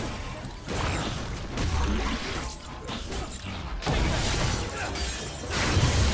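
Magic spell effects whoosh and crackle in a video game battle.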